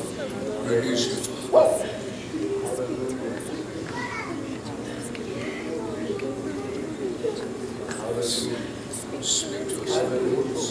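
A man speaks steadily through a loudspeaker in a large echoing hall.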